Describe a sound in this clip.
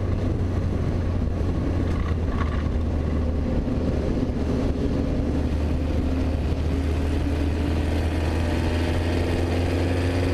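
A race car engine roars loudly up close, holding a steady high drone.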